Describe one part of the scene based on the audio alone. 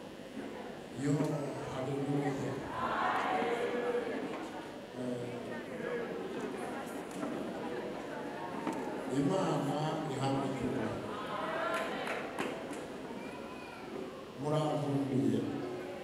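A man speaks into a microphone with animation, heard through loudspeakers.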